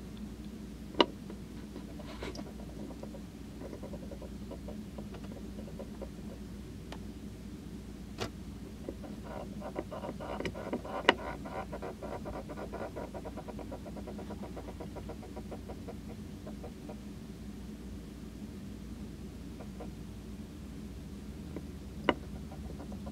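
Hermit crabs click and scrape as they climb over shells and wood.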